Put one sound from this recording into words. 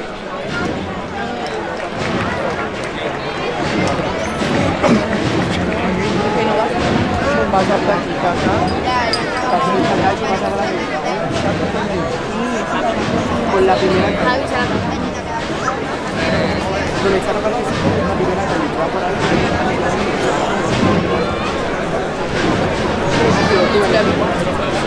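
A large crowd of people chatters and murmurs outdoors.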